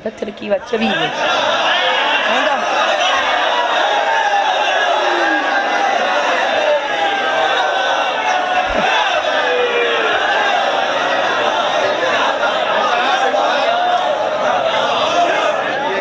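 A boy recites with feeling into a microphone, heard through loudspeakers.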